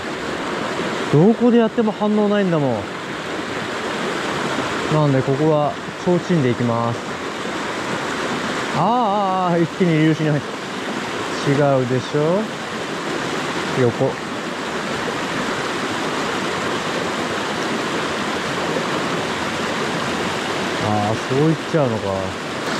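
A mountain stream rushes and splashes over rocks nearby.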